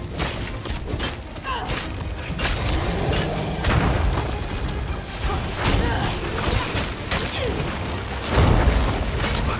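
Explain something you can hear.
Weapons strike again and again in a fight.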